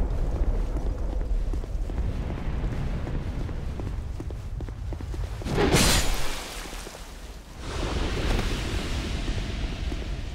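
Armoured footsteps run across stone.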